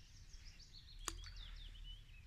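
A fishing weight splashes into calm water.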